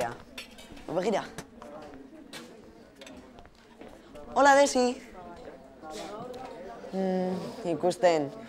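A teenage boy talks with animation close by.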